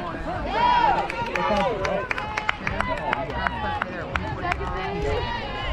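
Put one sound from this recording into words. Young women shout and cheer across an open field.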